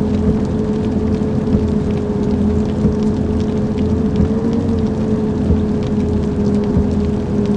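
A bus engine drones steadily at cruising speed.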